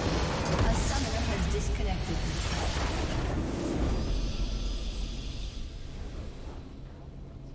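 A huge explosion booms and roars, then slowly fades.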